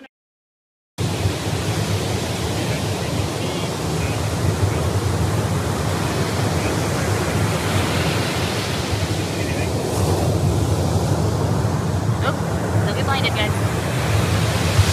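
Ocean waves wash steadily onto a beach in a strong wind.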